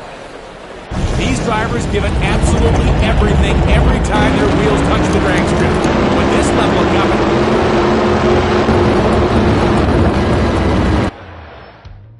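A drag racing engine roars loudly and steadily.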